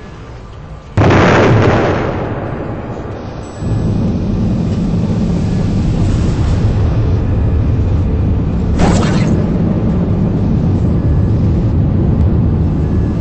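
A rocket engine roars loudly.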